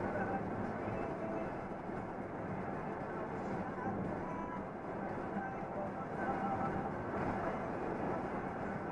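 A vehicle's engine drones steadily while driving on a highway.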